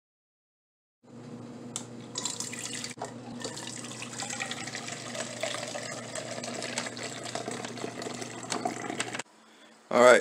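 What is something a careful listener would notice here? Coffee pours from a machine into a cup with a steady trickle and hum.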